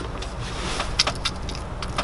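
A plastic squeeze bottle squirts and sputters.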